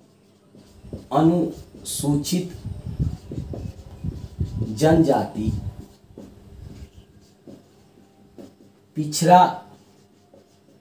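A man speaks calmly in a lecturing tone, close by.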